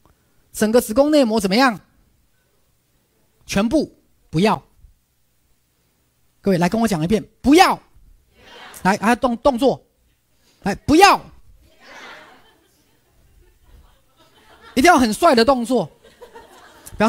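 A man speaks with animation into a clip-on microphone, in short bursts with pauses.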